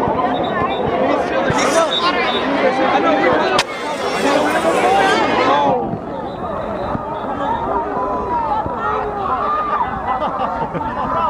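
A dense crowd of men and women talks and shouts all around, close by.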